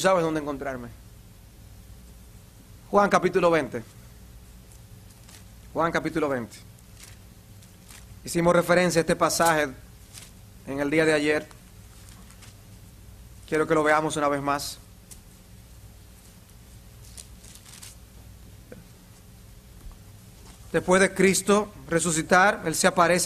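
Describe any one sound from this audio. A middle-aged man speaks slowly and deliberately into a microphone, with pauses between phrases.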